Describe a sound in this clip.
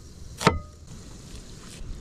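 A knife slices through an onion on a wooden board.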